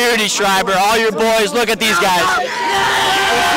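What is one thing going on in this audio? A young man speaks close to a microphone, answering with excitement.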